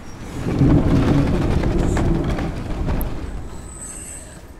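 A heavy wooden gate rumbles and grinds open.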